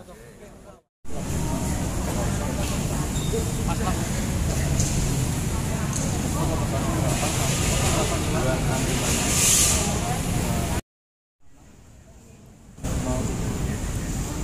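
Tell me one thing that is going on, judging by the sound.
A crowd murmurs and chatters loudly in a large echoing hall.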